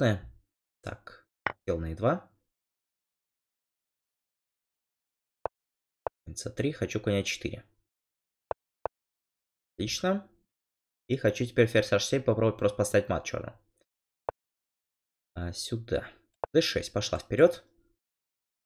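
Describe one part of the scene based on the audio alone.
A man talks with animation into a close microphone, in short bursts with pauses.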